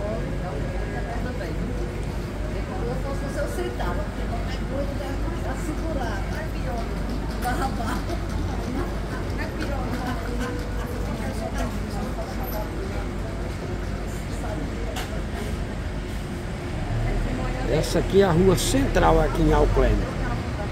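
A busy outdoor street hums with steady traffic and crowd noise.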